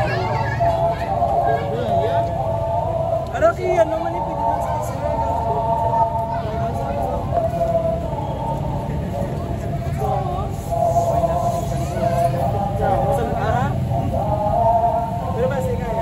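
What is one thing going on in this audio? Young men talk nearby.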